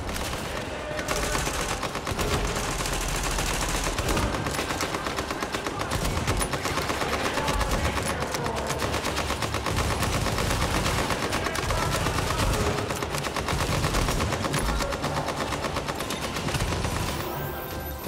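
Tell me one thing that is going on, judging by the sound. Rifles fire in rapid, rattling bursts, echoing in a large hall.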